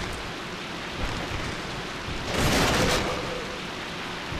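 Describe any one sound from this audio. Wooden planks crash and splinter.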